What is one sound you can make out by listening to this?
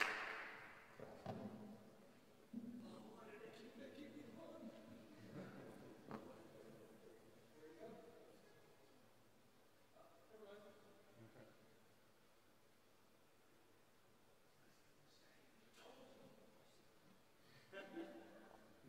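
Men talk casually at a distance in a large echoing hall.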